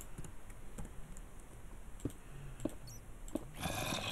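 A stone block thuds into place.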